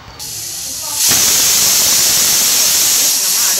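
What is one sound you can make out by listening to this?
A pressure cooker hisses loudly, releasing steam.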